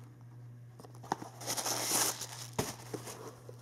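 Tissue paper rustles and crinkles.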